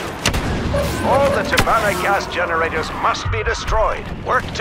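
Blaster guns fire rapid zapping shots.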